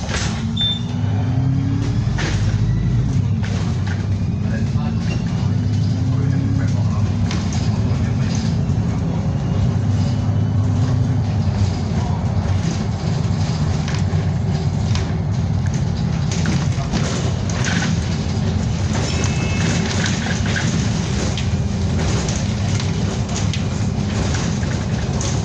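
A diesel bus engine drones, heard from inside the bus as it drives along a road.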